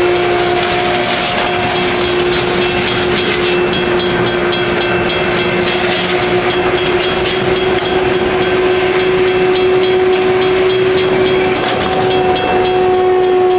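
A rail grinding train screeches loudly and steadily as its grinders scrape the rails.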